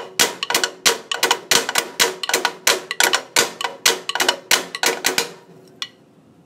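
Music with a quick, punchy beat plays from a phone.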